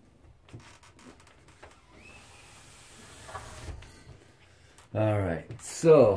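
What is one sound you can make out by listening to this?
A cat's paws pad softly on wooden boards.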